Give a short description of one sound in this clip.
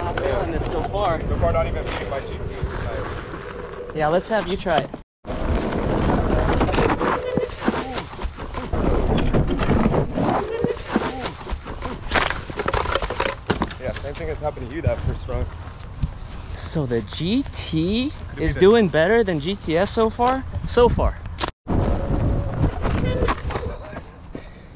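A board's wheel rumbles over rough dirt.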